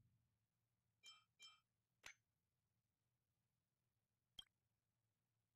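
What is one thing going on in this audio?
Short electronic interface chimes blip as menu options are selected.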